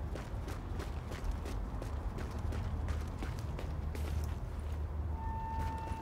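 Footsteps crunch quickly over snow.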